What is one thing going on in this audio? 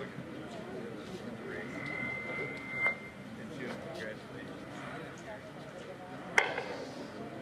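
A man speaks into a microphone over a loudspeaker outdoors.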